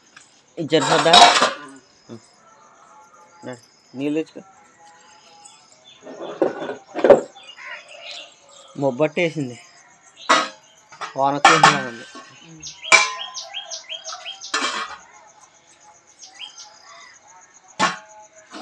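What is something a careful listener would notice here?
Metal pots clink and clatter as they are handled.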